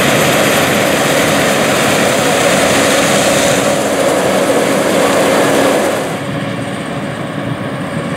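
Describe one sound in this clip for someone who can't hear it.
Dry corn stalks crackle and rustle as a combine harvester cuts through them.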